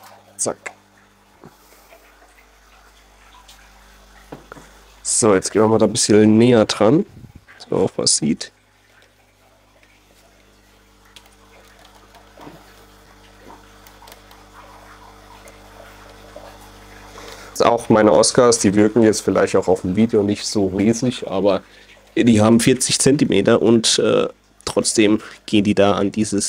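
Water bubbles and gurgles steadily from an aerator.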